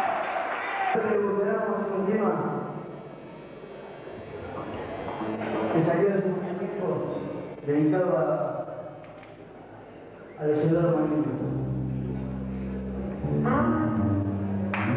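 A young man sings loudly into a microphone over loudspeakers.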